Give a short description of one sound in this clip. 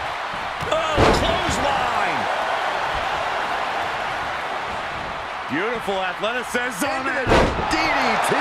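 A body slams onto a canvas ring mat with a heavy thud.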